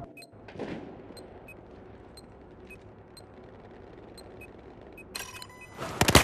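Soft menu clicks tick at a steady pace.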